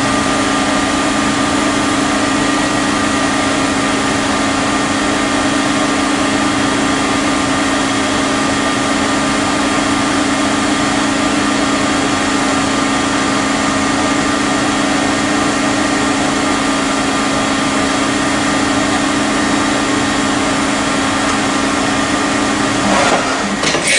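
A milling machine's spindle whirs with a steady, droning hum.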